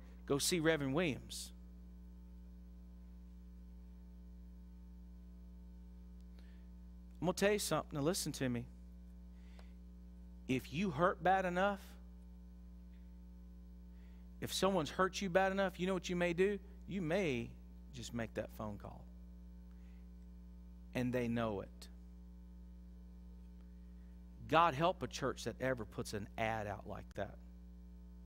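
A middle-aged man speaks in short bursts with long pauses, heard through a microphone.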